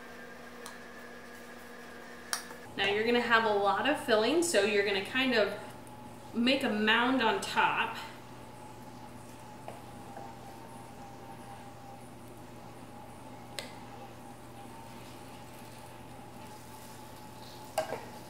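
A wooden spoon scrapes and stirs food in a bowl.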